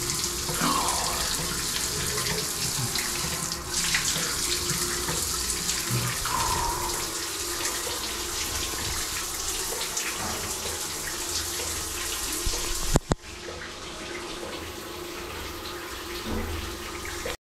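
Water from a shower sprays and splashes steadily.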